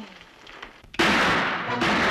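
A shotgun fires with a loud bang.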